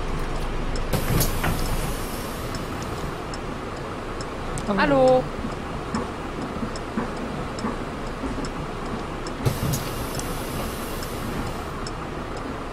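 Bus doors hiss open and shut.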